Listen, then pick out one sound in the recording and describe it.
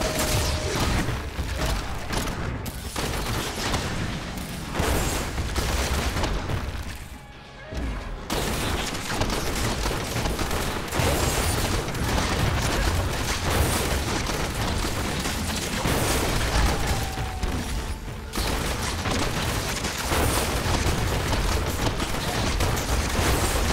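Game spells crackle and blast in quick bursts.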